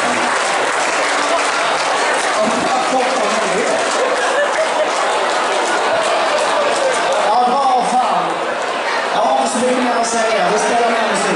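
A rock band plays loudly through loudspeakers in a large hall.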